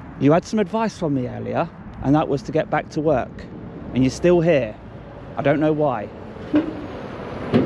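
A man speaks loudly close by, outdoors.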